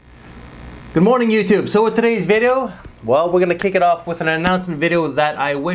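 A man speaks calmly and with animation close to a microphone.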